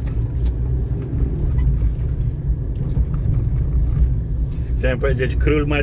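A car drives along a road with a steady low rumble.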